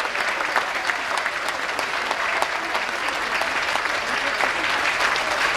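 A large crowd chatters in the background.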